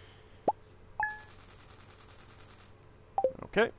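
Quick electronic ticks rattle as a tally counts up.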